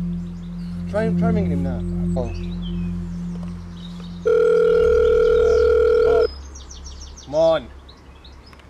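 A man speaks nearby in a calm voice.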